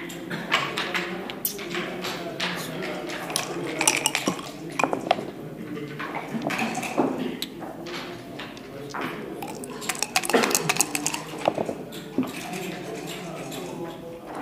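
Backgammon checkers click and clack as they are moved on a wooden board.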